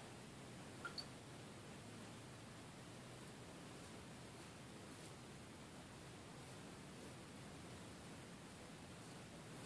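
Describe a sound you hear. A razor scrapes softly through stubble, close by.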